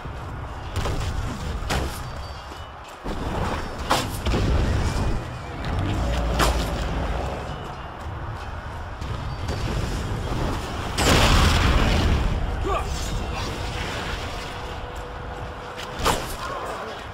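Steady rumbling battle noise rolls underneath.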